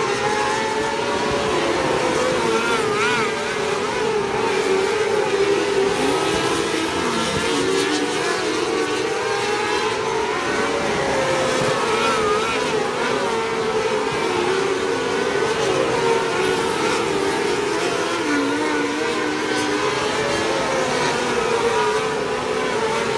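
Several racing car engines roar loudly around a dirt track, rising and falling in pitch as they pass.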